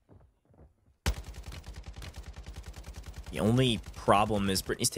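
Rapid automatic gunfire rattles in a video game.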